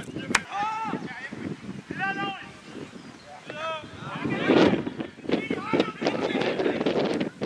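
Young men shout and call to each other outdoors across an open field.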